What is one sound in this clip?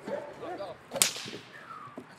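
A stick cracks sharply against padding.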